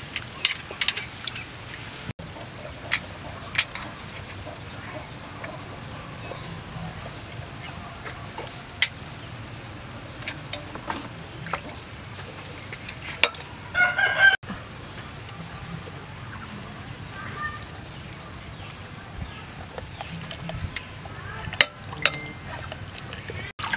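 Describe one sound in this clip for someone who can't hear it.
Hands squelch and slosh a raw chicken in a pot of liquid.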